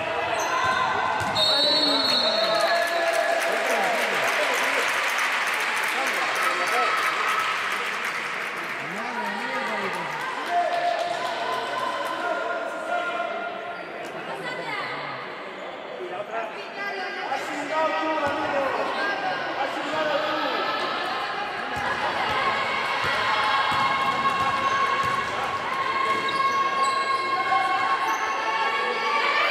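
Young women call out to one another across the hall.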